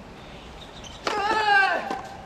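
A racket strikes a tennis ball with a sharp pop.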